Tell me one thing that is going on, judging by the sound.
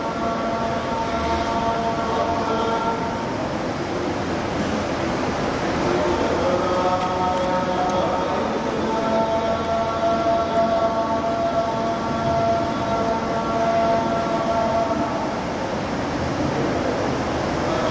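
A middle-aged man chants a recitation in a slow, melodic voice through a microphone.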